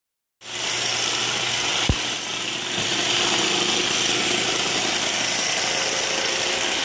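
A robot vacuum whirs and hums steadily as it runs.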